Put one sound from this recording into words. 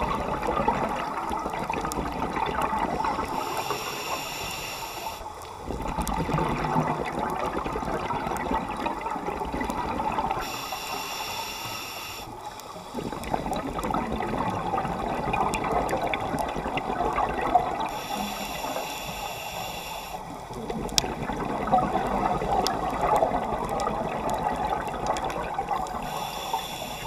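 Exhaled bubbles gurgle and rush up from a scuba regulator underwater.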